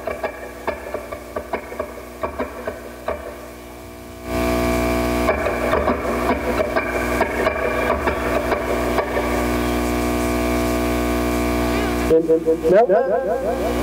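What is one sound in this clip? An electric guitar plays plucked notes through an amplifier.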